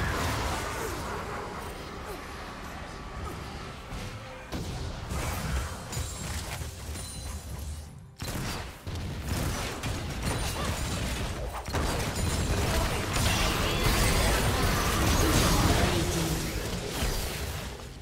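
Spells and weapons clash and burst in a fast game battle.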